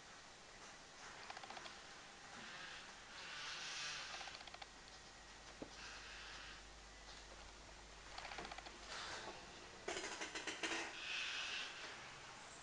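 A young man breathes heavily and sighs close by.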